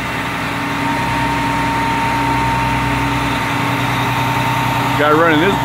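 A hydraulic crane arm whines as it moves.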